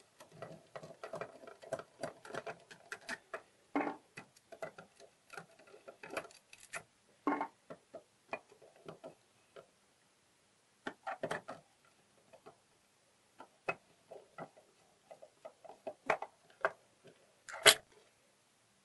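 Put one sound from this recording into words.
Metal lock parts clack as they are moved by hand.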